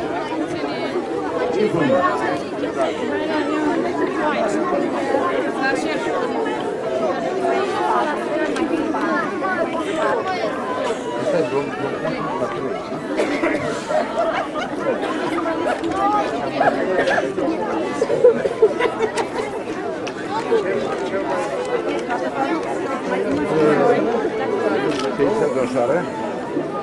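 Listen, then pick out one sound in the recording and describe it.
A crowd of children chatters outdoors.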